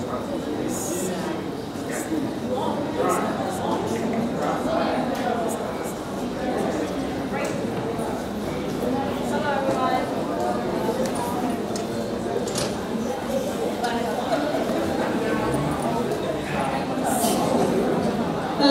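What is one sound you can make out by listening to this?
A young woman speaks calmly through a microphone in a large echoing hall.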